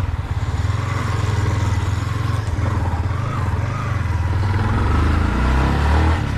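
Wind rushes past a rider.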